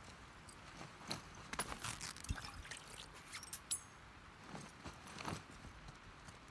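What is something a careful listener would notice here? Small items rustle and clatter as something is put together by hand.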